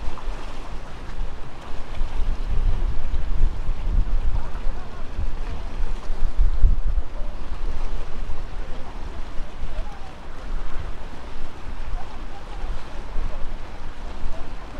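Water laps and splashes against a seawall.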